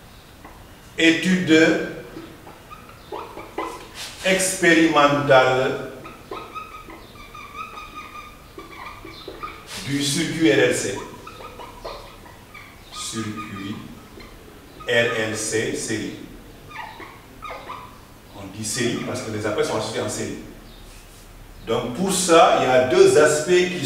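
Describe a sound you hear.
A man speaks calmly and explains at a steady pace, close by.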